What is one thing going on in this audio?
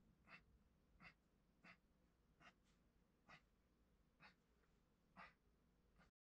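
Fingers pat and press soft clay with faint, light taps.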